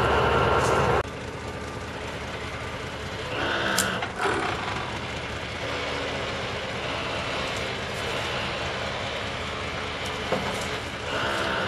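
A forestry machine's engine hums steadily.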